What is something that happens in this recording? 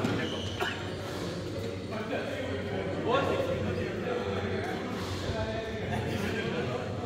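Shoes squeak on a hard court floor in a large echoing hall.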